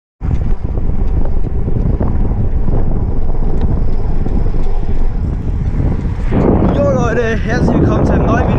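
Wind rumbles loudly against a microphone while riding.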